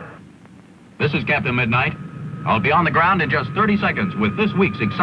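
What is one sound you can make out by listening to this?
A young man speaks calmly over a headset microphone.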